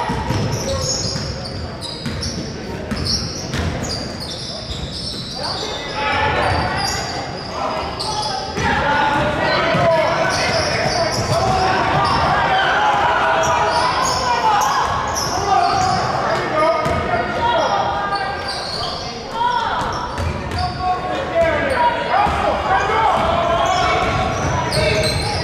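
A crowd of spectators shouts and cheers, echoing in a large hall.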